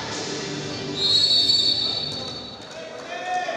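A referee's whistle blows a short, shrill blast.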